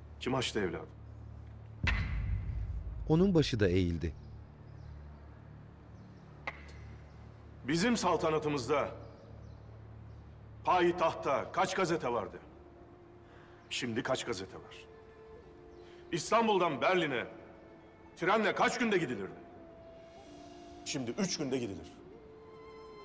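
A man speaks.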